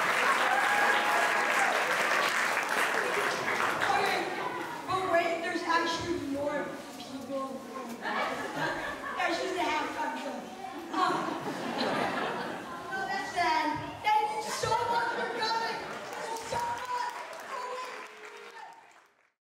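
A boy speaks with animation into a microphone over loudspeakers.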